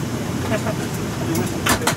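An overhead bin is pushed and latches shut with a click.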